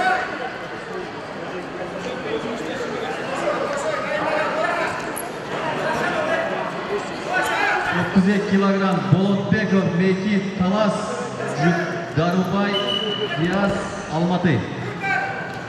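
A crowd of spectators chatters and calls out in an echoing hall.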